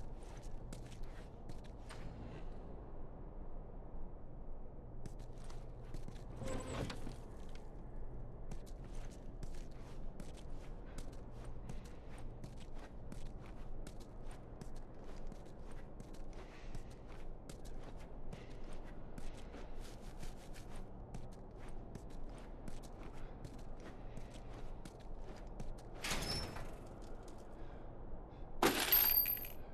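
Footsteps crunch slowly on a gritty floor.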